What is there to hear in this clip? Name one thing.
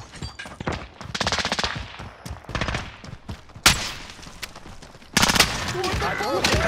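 A rifle fires rapid bursts close by.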